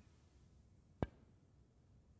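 A cue sharply strikes a snooker ball.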